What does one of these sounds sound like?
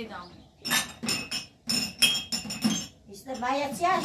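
Glass cups clink together.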